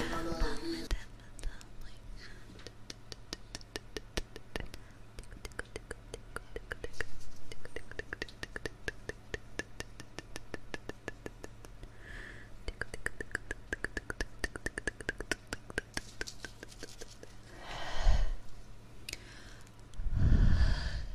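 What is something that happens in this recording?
A young woman makes soft, rapid mouth clicks and smacks close to a microphone.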